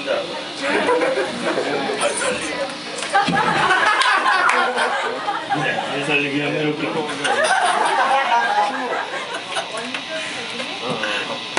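A man sings loudly into a microphone through loudspeakers.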